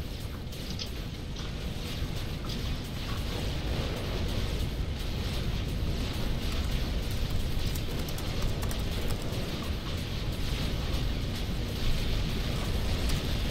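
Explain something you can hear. Explosions rumble low and steadily throughout a battle.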